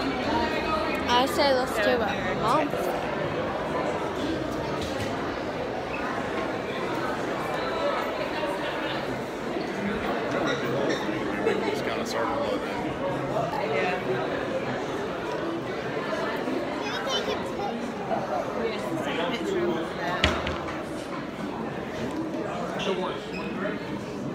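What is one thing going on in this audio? A crowd of adults and children chatters throughout.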